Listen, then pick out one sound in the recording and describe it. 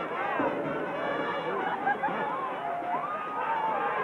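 A crowd cheers during a play.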